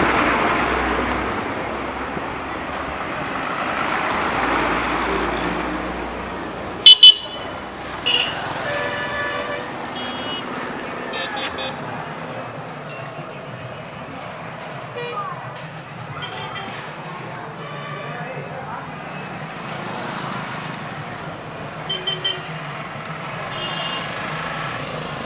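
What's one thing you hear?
A motorbike engine hums steadily while riding along a road.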